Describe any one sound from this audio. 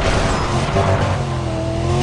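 A car crashes through roadside barriers.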